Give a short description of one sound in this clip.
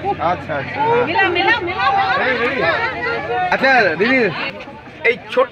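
A crowd talks and calls out nearby.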